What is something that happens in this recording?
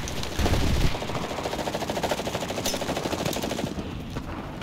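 Footsteps crunch over rubble at a steady pace.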